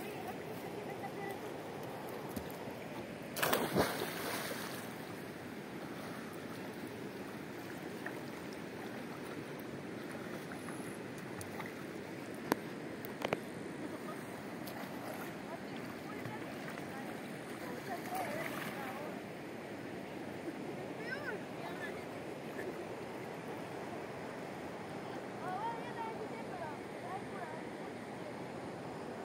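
A river flows and rushes steadily.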